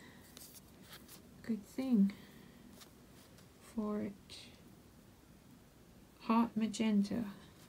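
A crayon scratches softly across paper.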